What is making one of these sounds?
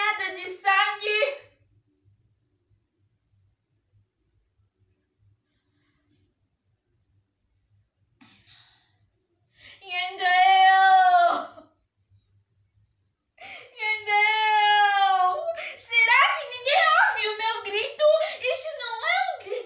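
A young woman laughs and wails loudly close by.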